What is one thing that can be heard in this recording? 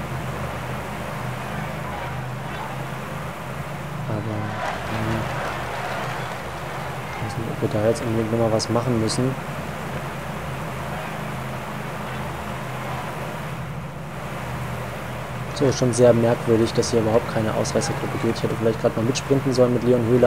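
Bicycle wheels whir steadily along a road.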